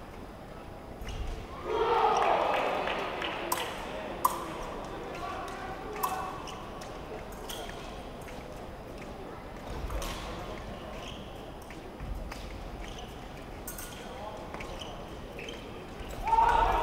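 Spectators murmur and call out in a large echoing hall.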